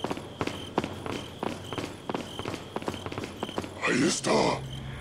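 Footsteps thud quickly on stone steps.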